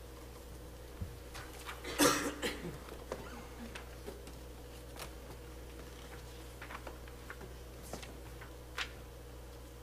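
Soft knocks and shuffles sound as people move about.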